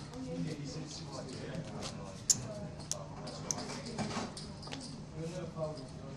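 Poker chips click together on a felt table.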